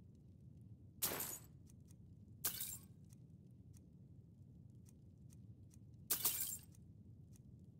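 Coins jingle briefly several times.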